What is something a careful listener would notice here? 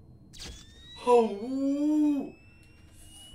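A young man lets out a loud, drawn-out exclamation close to a microphone.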